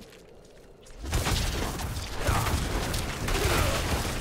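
Fiery blasts burst and crackle in a loud fight.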